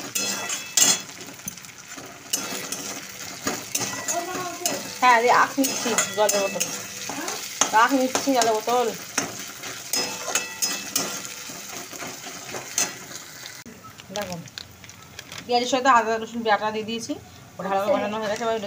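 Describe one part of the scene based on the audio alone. A metal spatula scrapes and clanks against a wok.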